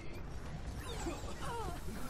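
A game weapon fires bursts of shots.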